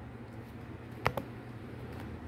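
A small metal clip clicks.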